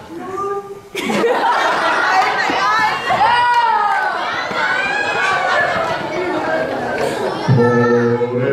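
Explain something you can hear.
Young girls laugh and shriek loudly.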